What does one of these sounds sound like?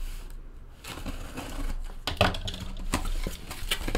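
A knife slices through packing tape on a cardboard box.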